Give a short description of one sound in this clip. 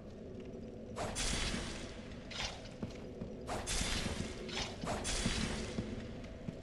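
Footsteps clatter on a stone floor.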